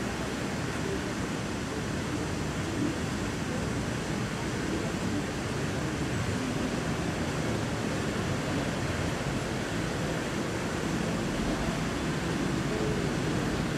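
A fountain's jets of water rush and splash steadily into a pond.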